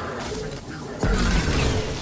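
An explosion bursts with a loud roar.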